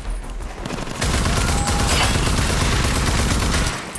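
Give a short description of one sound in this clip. A rifle fires rapid bursts of gunshots.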